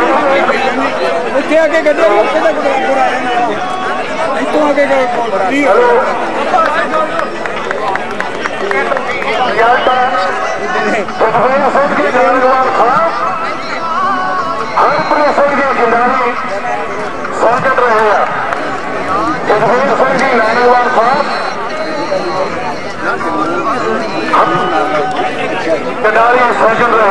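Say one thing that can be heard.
A crowd of men chatters in the background.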